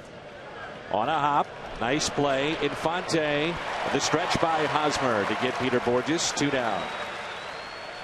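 A stadium crowd cheers loudly, then quiets down.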